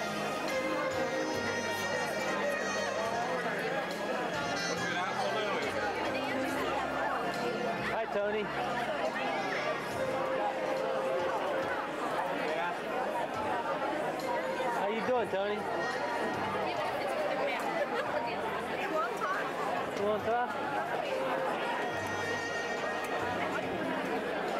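Many people chatter at once in a large, echoing hall.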